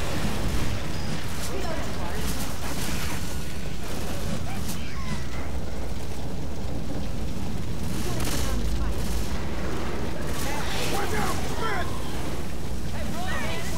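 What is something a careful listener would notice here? A gun fires in rapid bursts.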